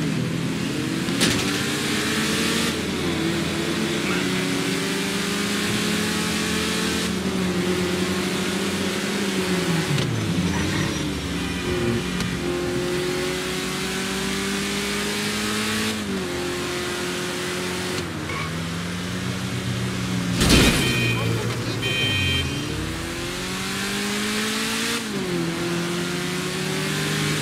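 A car engine roars steadily, its pitch rising and dropping with each gear change.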